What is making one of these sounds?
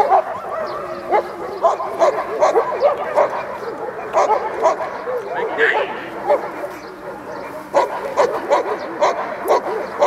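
A man shouts commands at a dog.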